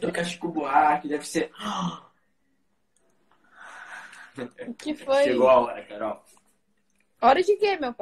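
A young man exclaims and laughs over an online call.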